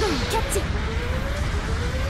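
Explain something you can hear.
A robot's beam rifle fires with sharp blasts.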